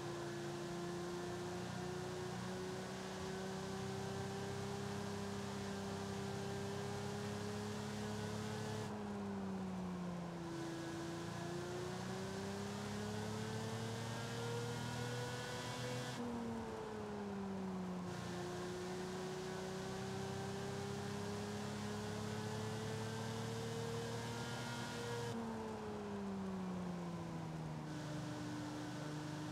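A sports car engine roars steadily, rising in pitch and dropping sharply at each gear change.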